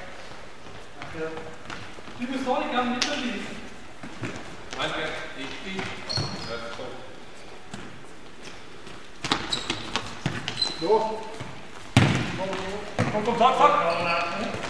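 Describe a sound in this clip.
Young men shout and call out to each other across a large echoing hall.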